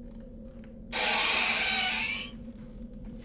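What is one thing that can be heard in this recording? A metal stove door creaks open.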